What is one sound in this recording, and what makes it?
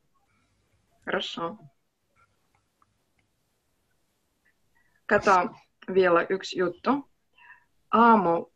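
A woman speaks calmly through an online call microphone, in short phrases with pauses.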